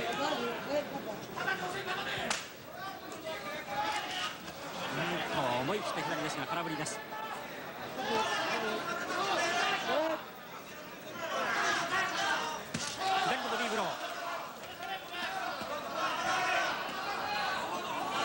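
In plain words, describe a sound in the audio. A large crowd cheers and shouts around a boxing ring.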